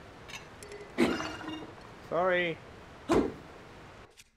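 Heavy blows strike a wooden shield.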